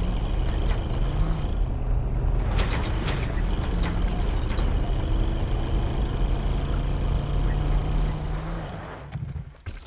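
A car engine rumbles steadily as a car drives over rough ground.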